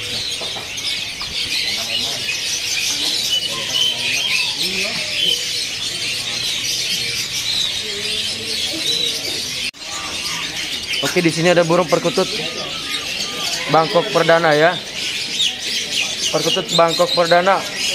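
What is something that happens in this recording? Many small birds chirp and twitter all around.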